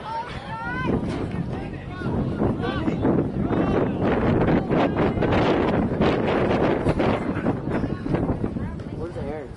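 A crowd of spectators cheers and chatters nearby.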